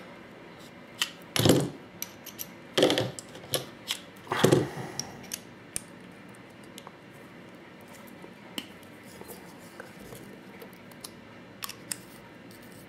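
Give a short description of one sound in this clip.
Metal hex keys clink against small metal parts.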